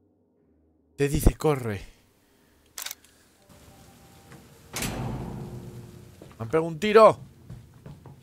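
A young man speaks into a close microphone with animation.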